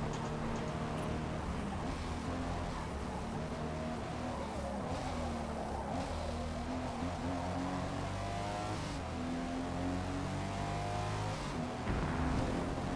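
A car engine roars, revving up and down as gears shift.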